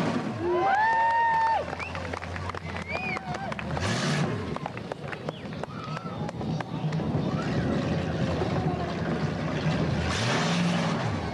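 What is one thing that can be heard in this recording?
A car engine revs hard.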